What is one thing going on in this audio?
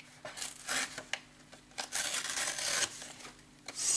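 Paper tears with a rough ripping sound.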